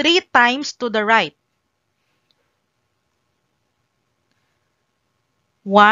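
A young woman speaks calmly and clearly into a microphone.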